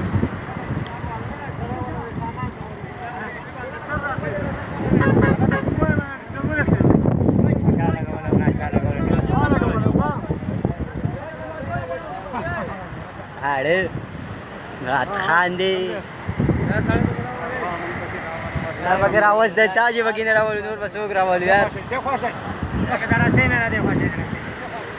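Several men talk and shout excitedly close by, outdoors.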